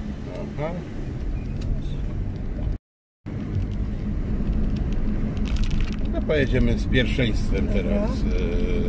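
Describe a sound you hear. A car engine hums and tyres rumble on the road from inside the car.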